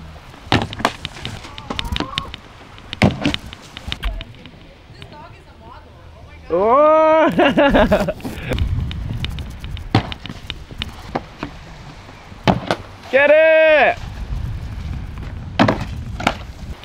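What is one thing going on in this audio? A wakeboard skims and splashes across the water.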